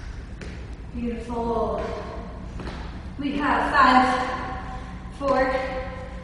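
A woman speaks clearly and with energy, close by.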